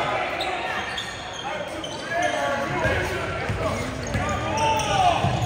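Spectators murmur in a large echoing gym.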